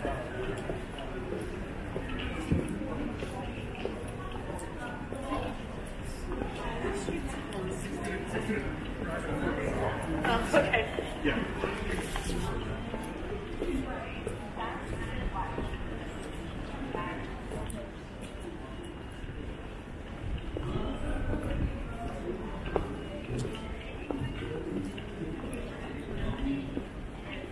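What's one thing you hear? Footsteps tap on a stone pavement as people walk past.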